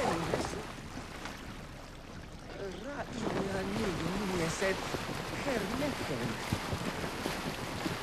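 Water swishes against a moving boat's hull.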